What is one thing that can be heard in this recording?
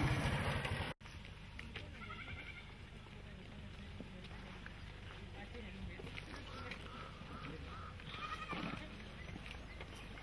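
Footsteps crunch on a dirt road as several people walk.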